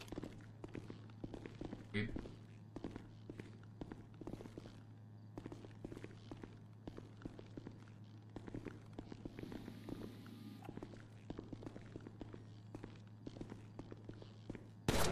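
Boots step steadily on a hard floor indoors.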